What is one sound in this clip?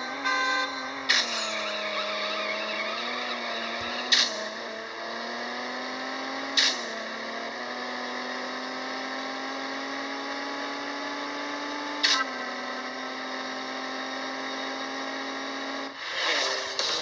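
A car engine roars and revs up through the gears.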